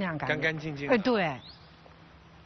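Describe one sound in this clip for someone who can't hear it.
A middle-aged woman speaks loudly and with animation, close by.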